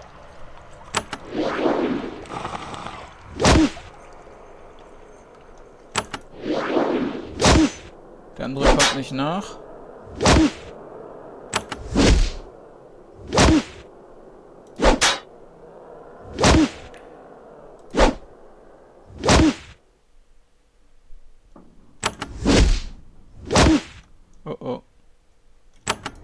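Weapon blows land again and again in a game fight.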